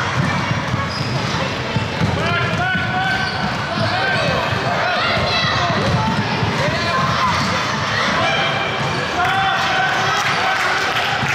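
Basketball bounces thud on the hard floor.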